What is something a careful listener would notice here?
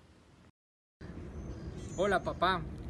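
A man speaks cheerfully, close by.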